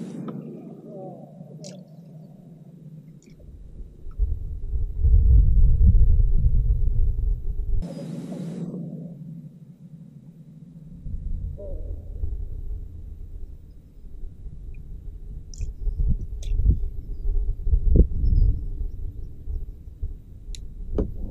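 A man winds a spinning reel on a fishing rod.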